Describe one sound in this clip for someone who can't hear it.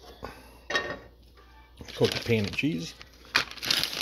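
A frying pan clatters onto a metal stove grate.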